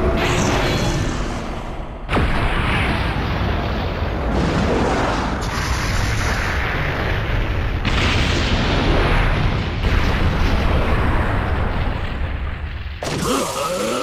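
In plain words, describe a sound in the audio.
A huge blast rumbles and roars with deep booming explosions.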